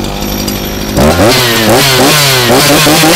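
A chainsaw engine revs up and down sharply.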